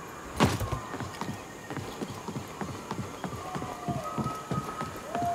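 Footsteps patter quickly on wooden boards.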